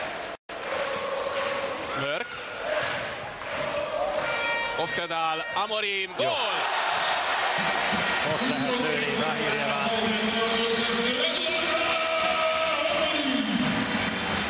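A large crowd cheers and roars loudly in an echoing arena.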